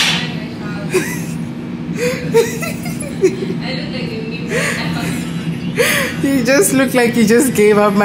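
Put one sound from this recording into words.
A young woman laughs nearby.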